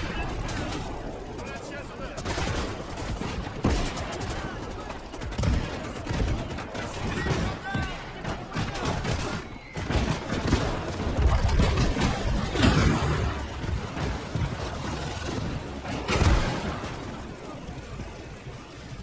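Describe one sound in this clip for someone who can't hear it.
Tank engines rumble steadily.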